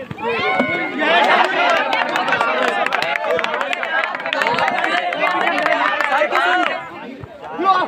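Young men shout excitedly up close during a tackle.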